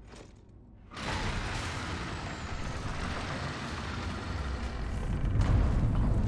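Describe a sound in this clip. Heavy wooden doors creak and swing open.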